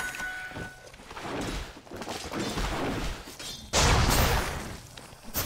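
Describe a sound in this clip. Magic spell effects whoosh and crackle.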